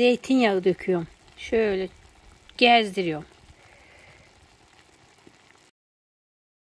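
Liquid pours from a bottle and splashes softly into a dish.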